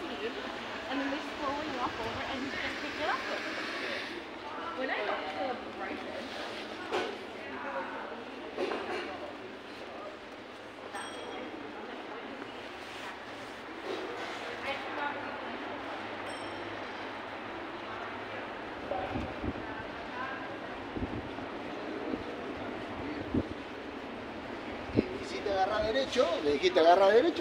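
Footsteps tap on a paved street.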